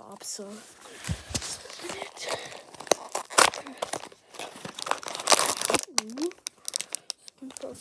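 A cardboard box rustles and crinkles in hands.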